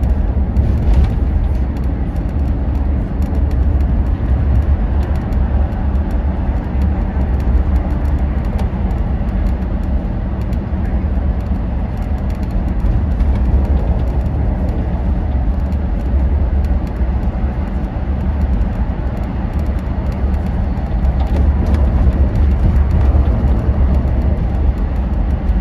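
Traffic rushes steadily along a busy motorway.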